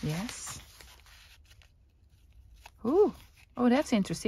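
Paper rustles softly as it is folded.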